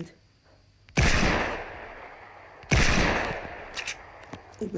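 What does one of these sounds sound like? Two loud gunshots ring out, each followed by a long echoing tail.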